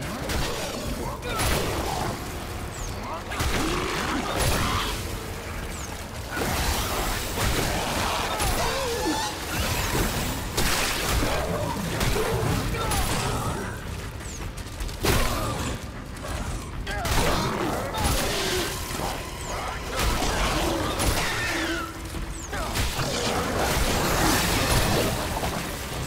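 Monstrous creatures growl and screech close by.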